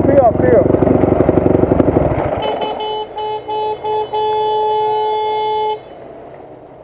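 A dirt bike engine roars close by.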